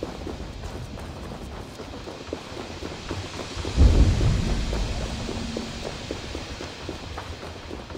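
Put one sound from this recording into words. Armoured footsteps run quickly on stone.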